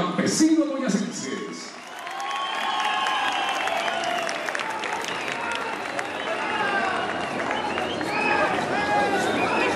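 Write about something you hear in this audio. Guitars strum.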